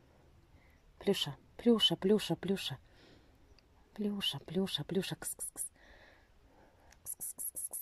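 A kitten scratches and digs in dry soil.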